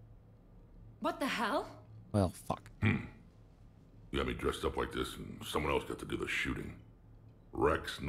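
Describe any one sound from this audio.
A man with a deep, gravelly voice speaks slowly.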